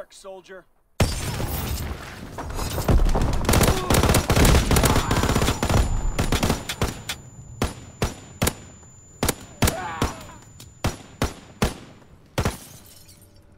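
A rifle fires rapid shots at close range.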